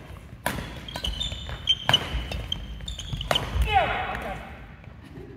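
Shoes squeak on a sports floor.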